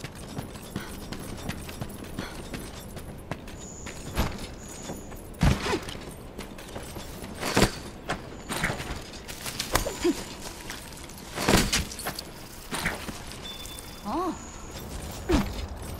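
Heavy thuds and scrapes sound as a creature climbs over rock and vines.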